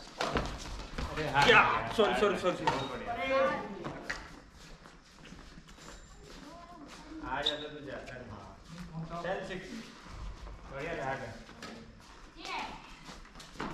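Men talk and call out across an echoing hall.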